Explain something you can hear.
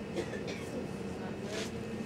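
Fingers brush and tap against a stiff card up close.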